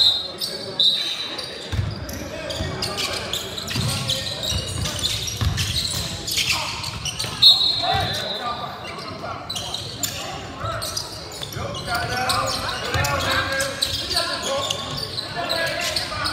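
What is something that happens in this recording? A crowd chatters and cheers in an echoing gym.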